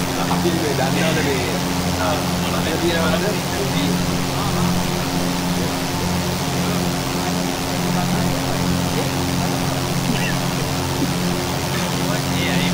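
A small propeller plane's engine drones steadily inside the cockpit.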